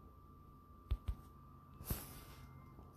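Footsteps tap on a hard floor.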